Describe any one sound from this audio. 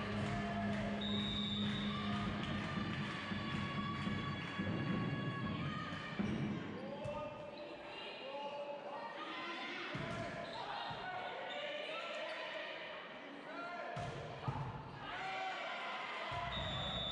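A volleyball is struck hard in a large echoing hall.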